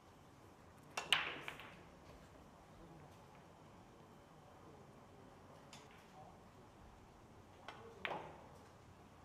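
Pool balls click against each other.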